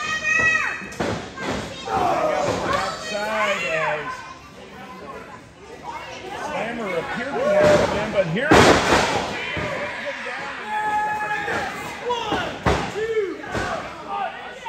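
Bodies slam onto a wrestling ring's mat with loud thuds.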